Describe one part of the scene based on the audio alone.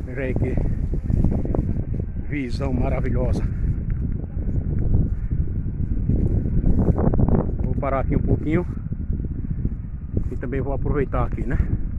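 Wind blows and buffets the microphone outdoors.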